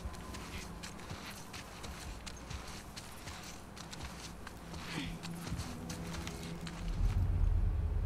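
Tall grass rustles and swishes close by.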